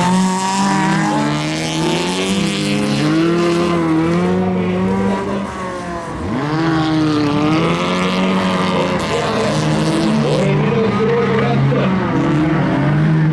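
Tyres skid and scrabble on loose gravel.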